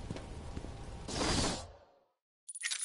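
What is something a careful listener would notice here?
A flock of bats flutters past with a rushing whoosh.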